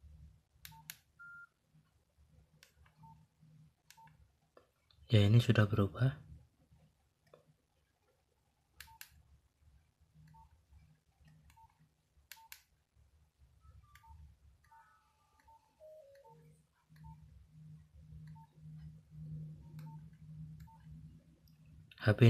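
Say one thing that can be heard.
Phone keys click softly as buttons are pressed.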